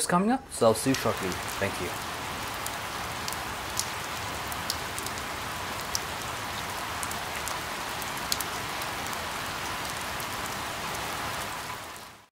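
Water drops fall from leaves.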